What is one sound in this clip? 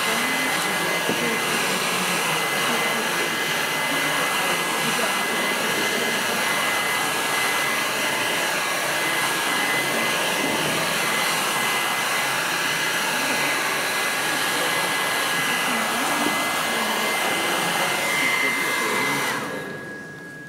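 A hair dryer blows with a loud, steady whine, then switches off.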